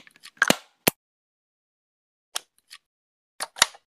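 A toy blaster's magazine clicks into place.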